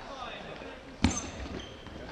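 A ball thuds off a player.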